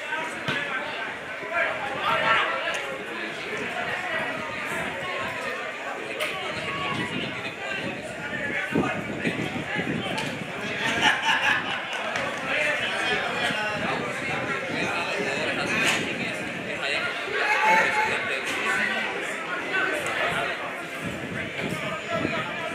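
Spectators close by chatter and call out outdoors.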